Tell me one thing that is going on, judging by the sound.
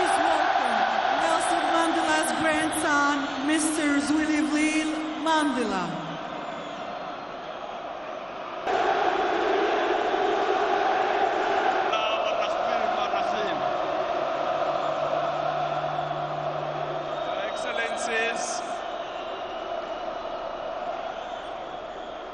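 A large crowd roars and cheers in a vast echoing stadium.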